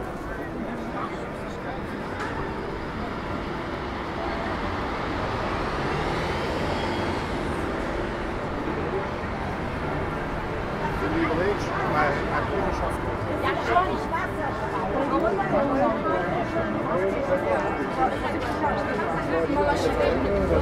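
Traffic rumbles along a busy city street outdoors.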